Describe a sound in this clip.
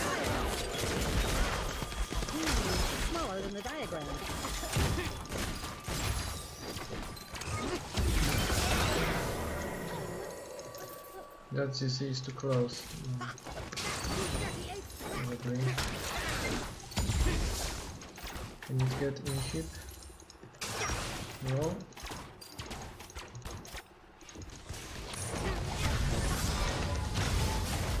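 Fantasy battle effects whoosh, crackle and clash.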